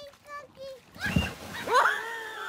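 A man splashes into water.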